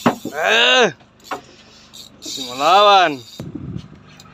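A fishing reel's drag whines loudly in rising and falling bursts as a fish pulls line.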